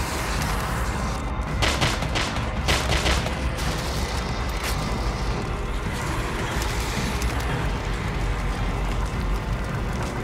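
Footsteps crunch over rubble.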